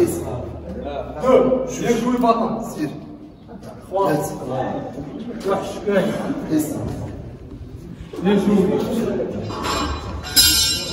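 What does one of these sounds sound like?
A man urges on a lifter loudly and with energy, close by.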